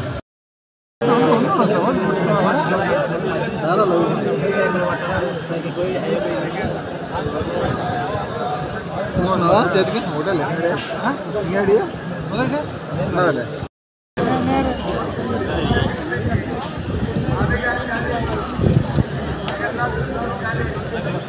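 A large crowd of people chatters and calls out close by.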